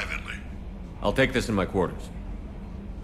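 A man speaks calmly and briefly.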